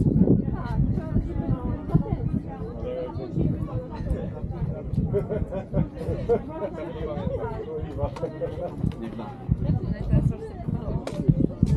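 A young woman and several men talk nearby outdoors.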